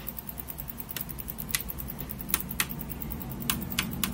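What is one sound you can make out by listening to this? Metal test probes click against a circuit board.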